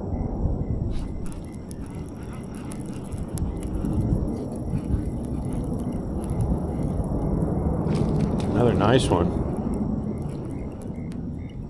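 A fishing reel whirs as the line is wound in.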